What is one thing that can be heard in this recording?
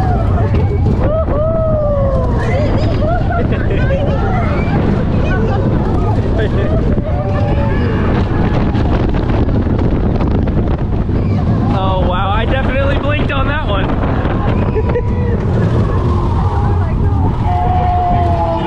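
A ride rattles and rumbles steadily along its track.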